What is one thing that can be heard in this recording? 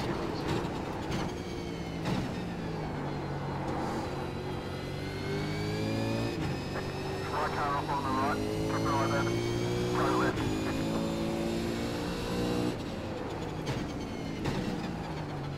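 A race car engine roars and rises and falls in pitch as it accelerates and shifts gears.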